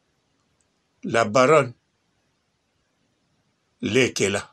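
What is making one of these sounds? A man speaks in short bursts close to a microphone, as if on an online call.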